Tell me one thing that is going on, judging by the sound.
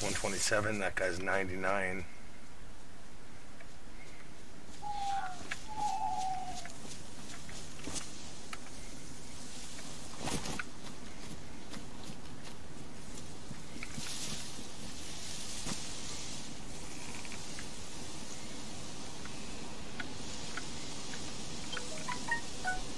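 Wind blows steadily through trees outdoors.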